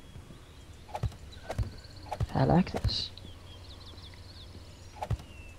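Footsteps knock on a wooden ladder.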